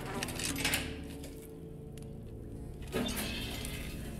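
A metal cell door rattles.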